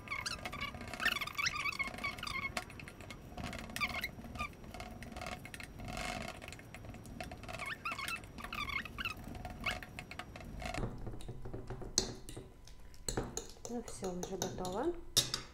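A fork mashes soft banana and scrapes against a ceramic plate.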